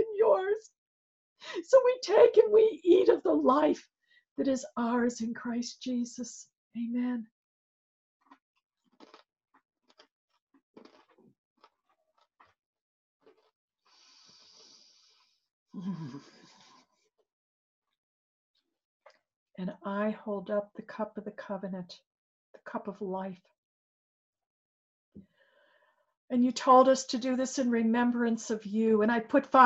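An older woman speaks with animation, close to a microphone.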